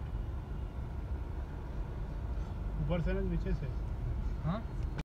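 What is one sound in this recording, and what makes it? A car engine hums steadily with a low road rumble from inside the car.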